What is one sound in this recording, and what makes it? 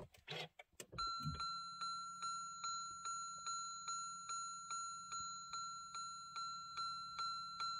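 A car's warning chime beeps over and over at a steady pace.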